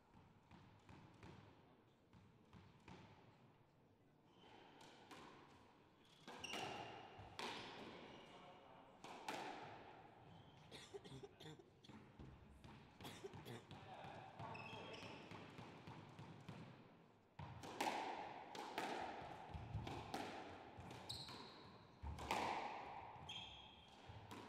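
A squash ball smacks hard against the walls and echoes in a large hall.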